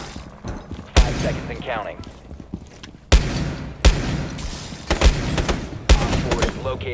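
A pistol fires sharp, loud single shots.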